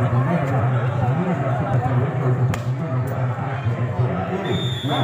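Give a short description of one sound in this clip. A crowd of young spectators chatters nearby outdoors.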